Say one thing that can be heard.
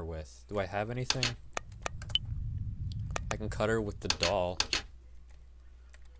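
Soft game menu blips sound several times.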